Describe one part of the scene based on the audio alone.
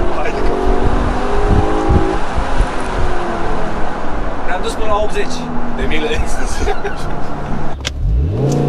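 A young man talks and laughs with animation.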